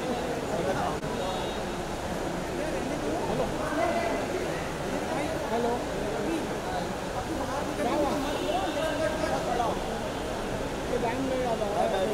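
A crowd of men and women chatter all around in a busy room.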